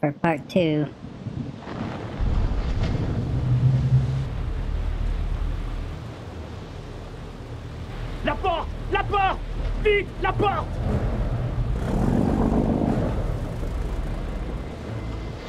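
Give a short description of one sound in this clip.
Waves wash and rumble low around a ship at sea.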